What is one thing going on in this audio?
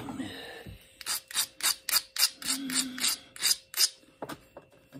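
Sandpaper rubs in quick, short scraping strokes.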